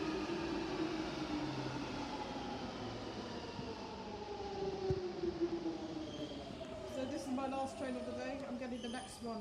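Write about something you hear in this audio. An underground train whines as it slows, its pitch gliding steadily down, echoing through a hard, tiled passage.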